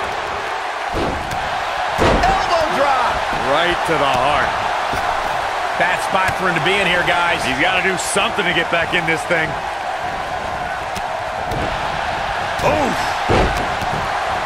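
Heavy thuds ring out as wrestlers slam onto the ring mat.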